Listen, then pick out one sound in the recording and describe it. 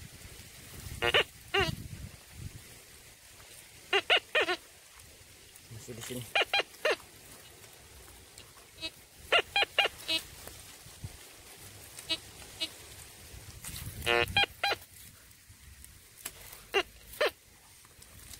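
A metal detector beeps in short, sharp tones as it sweeps over the ground.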